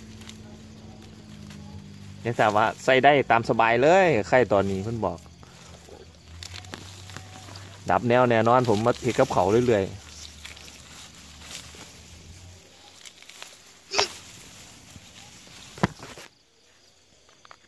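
Leaves and grass stalks rustle as hands pull at plants.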